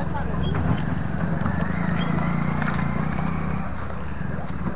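A motorcycle engine hums as it rides close past.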